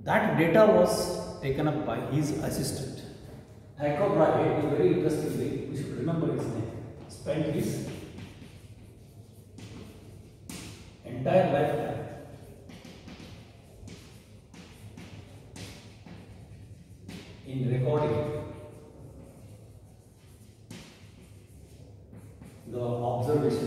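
A man speaks calmly and clearly, like a teacher explaining.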